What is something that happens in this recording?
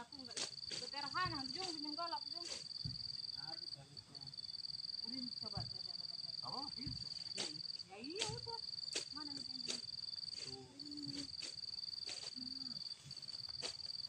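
A woman talks casually outdoors at a distance.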